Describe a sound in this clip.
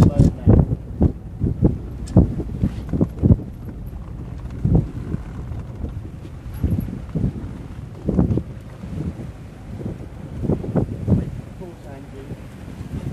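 Wind gusts buffet loudly outdoors.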